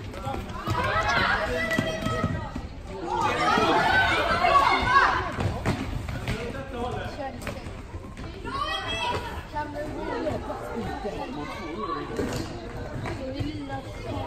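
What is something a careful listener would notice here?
Sticks clack against a ball on a hard floor.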